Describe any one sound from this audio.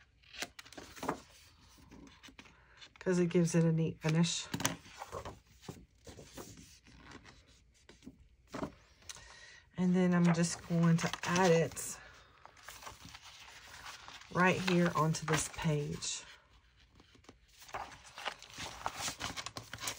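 Paper rustles and crinkles as it is handled close by.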